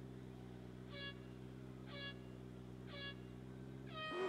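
Start lights beep three times.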